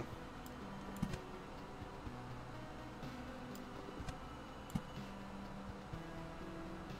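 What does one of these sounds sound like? Short soft interface clicks sound now and then.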